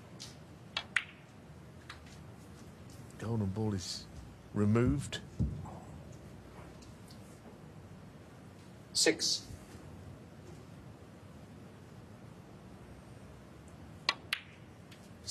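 Snooker balls knock together with a click.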